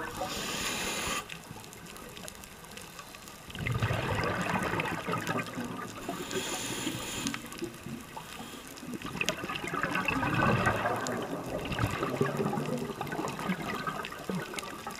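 Water gurgles and rushes, muffled, as if heard underwater.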